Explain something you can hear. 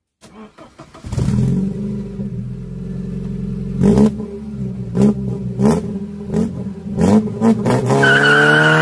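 A car engine idles with a low rumble.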